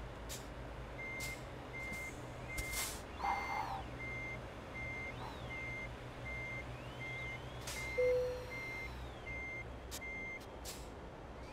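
A truck's reversing alarm beeps at an even pace.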